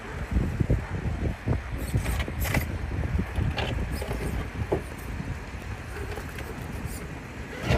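A small electric motor whirs as a toy truck crawls over rocks.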